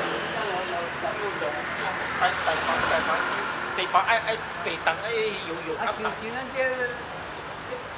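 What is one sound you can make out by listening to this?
A man talks as he walks past.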